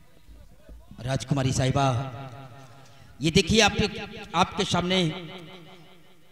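A man speaks loudly with animation through a microphone and loudspeakers.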